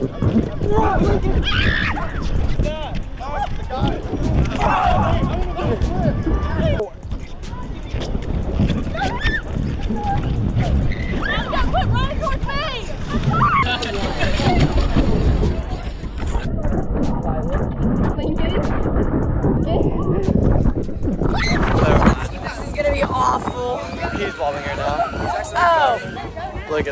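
Teenagers talk and laugh with excitement outdoors.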